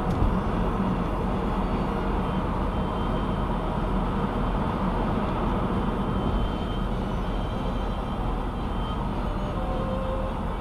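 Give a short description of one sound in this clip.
Wind rushes past the car.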